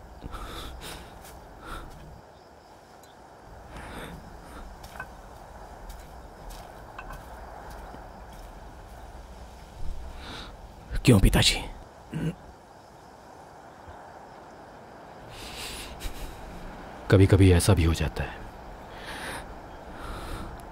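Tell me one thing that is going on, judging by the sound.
A man speaks quietly and tensely.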